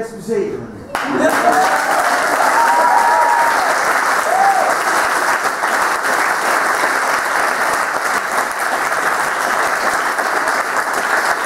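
A crowd claps loudly and steadily.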